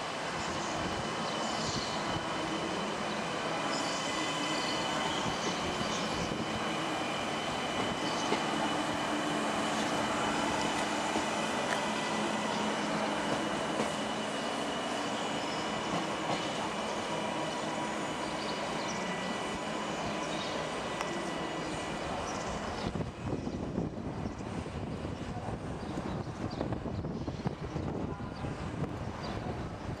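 A train rolls along the tracks with a steady rumble, heard from on board.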